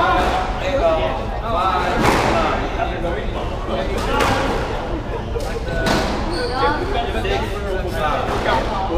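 Young girls talk and call out nearby in an echoing room.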